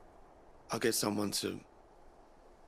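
A man speaks calmly and quietly.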